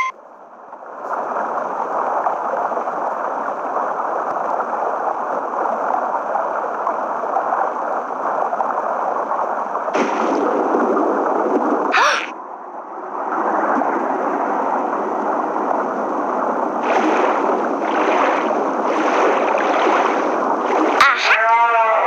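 A cartoon submarine chugs along with a steady bubbling whir.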